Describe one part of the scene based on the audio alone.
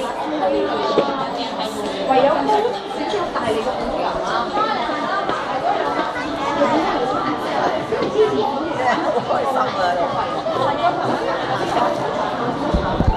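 Many voices murmur and echo in a large hall.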